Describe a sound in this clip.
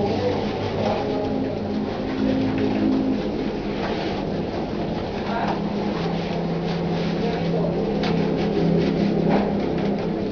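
A man rubs a dog's wet fur.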